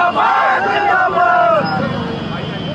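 A man shouts close by.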